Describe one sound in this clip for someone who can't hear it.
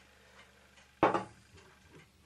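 Something is set down on a wooden table with a knock.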